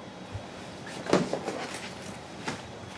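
A young man gets up from a creaking chair.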